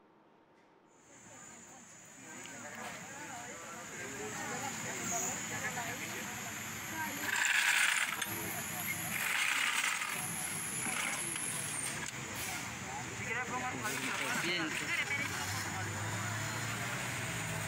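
A crowd of people murmurs and talks outdoors nearby.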